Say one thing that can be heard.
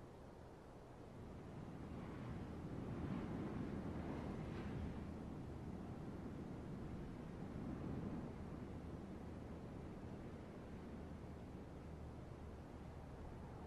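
Wind blows across open ground, swelling and slowly easing.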